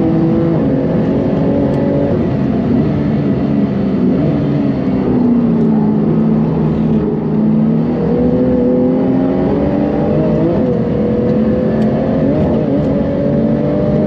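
Tyres rumble over the road at speed.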